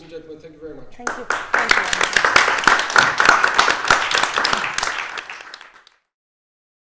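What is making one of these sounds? An audience applauds, then the applause fades out.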